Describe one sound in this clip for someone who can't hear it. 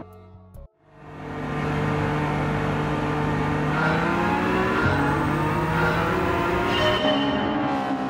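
A car engine roars and revs as it accelerates, shifting gears.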